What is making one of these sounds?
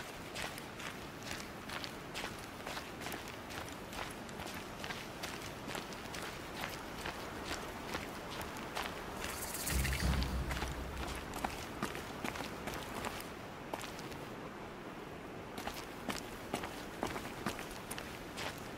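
Footsteps patter quickly and steadily on hard ground.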